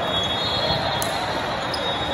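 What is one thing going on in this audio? A volleyball is struck with a sharp smack.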